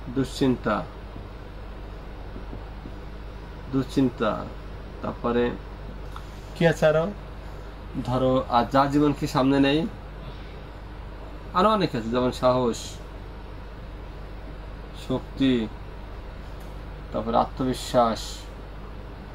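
A man speaks in short bursts, calmly explaining.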